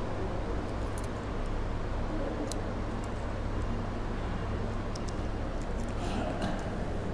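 Small objects click softly in a man's hands.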